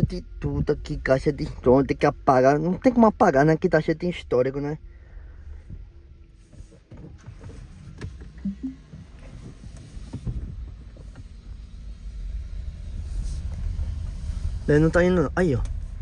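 A car rumbles low and steady while driving.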